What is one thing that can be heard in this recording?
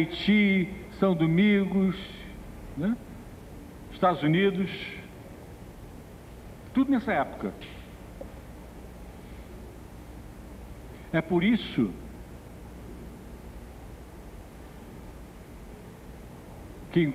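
A man speaks in short, slow phrases through a microphone in a large room.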